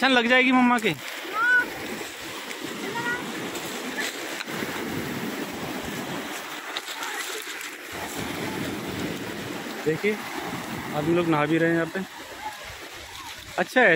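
Waves wash and break on the shore.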